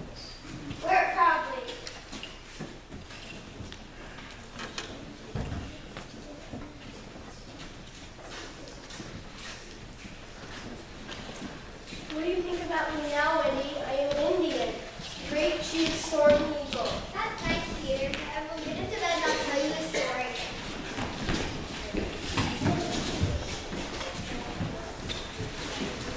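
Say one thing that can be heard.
Children speak and call out their lines in a large echoing hall.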